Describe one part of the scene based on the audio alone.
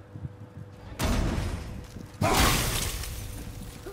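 A thrown axe strikes metal with a loud clang.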